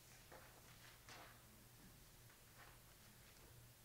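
Paper rustles briefly.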